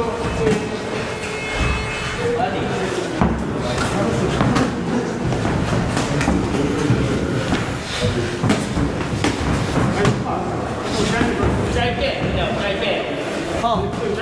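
Shoes shuffle and scuff on a canvas floor.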